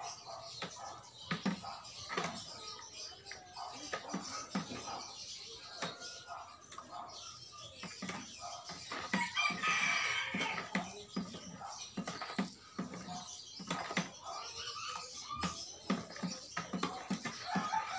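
Liquid sloshes in a bucket as it is stirred.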